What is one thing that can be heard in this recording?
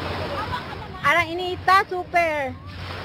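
A young woman speaks animatedly close to the microphone.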